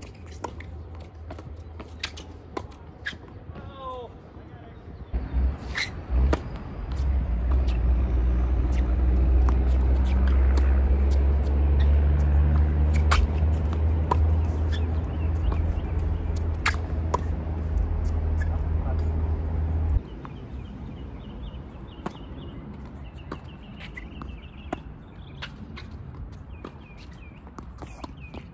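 A tennis ball bounces on a hard court.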